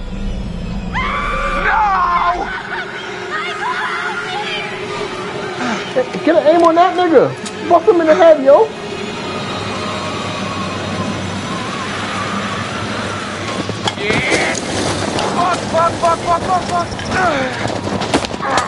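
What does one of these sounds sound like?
A young man shouts in panic.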